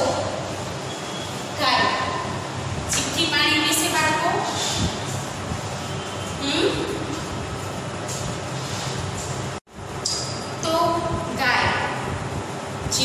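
A woman speaks clearly and steadily, as if teaching, in a room with some echo.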